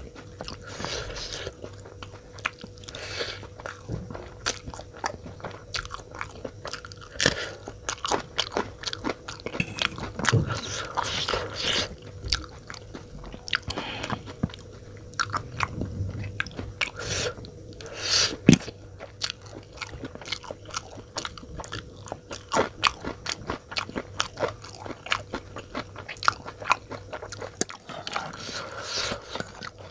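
A man slurps noodles loudly and chews wetly close to a microphone.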